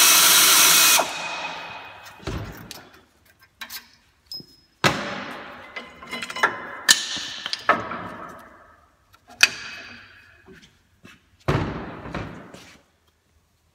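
Metal parts clank and knock, ringing in an echoing room.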